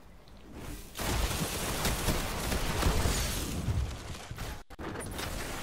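An explosion roars loudly.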